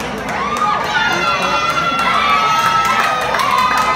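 A crowd claps and cheers as a boxer's arm is raised.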